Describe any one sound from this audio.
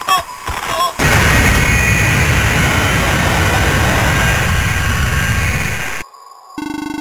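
A loud roaring blast crackles and rumbles, then cuts off.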